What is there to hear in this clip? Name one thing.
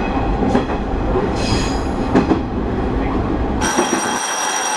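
A diesel railcar engine rumbles under power.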